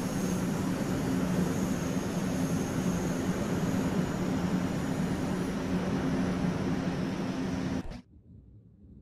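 A train hums loudly and steadily nearby, then cuts off abruptly.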